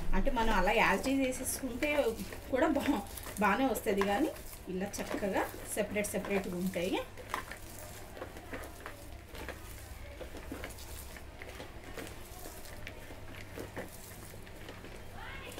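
Hands squish and rustle through chopped onions in a bowl.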